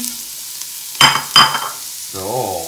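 A pot lid clanks as it is lifted off.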